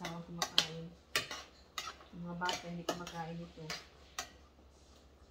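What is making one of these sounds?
A glass lid clinks against a metal pot.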